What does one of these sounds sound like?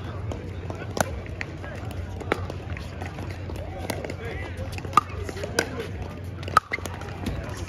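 Paddles strike a plastic ball with sharp pops, back and forth.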